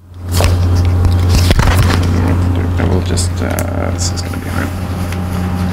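A microphone rustles and knocks as a man handles it close up.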